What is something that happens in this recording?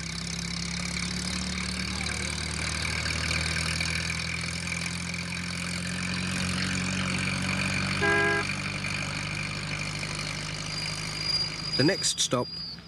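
A small van's engine hums steadily as it drives along.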